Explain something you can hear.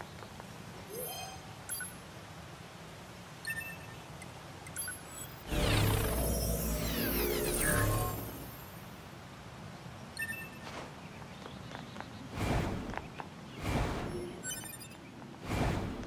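Short bright chimes sound as menu choices are made.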